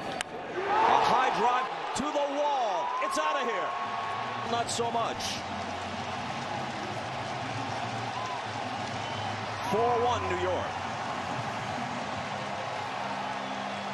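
A huge stadium crowd roars and cheers.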